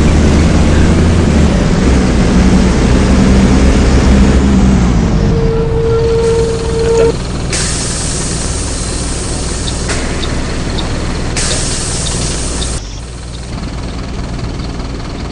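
A bus engine rumbles and idles low.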